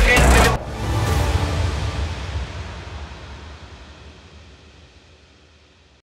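A violin plays a lively tune.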